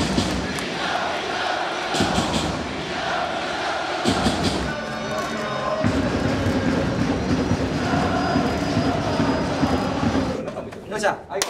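A large crowd cheers and chatters in a big echoing stadium.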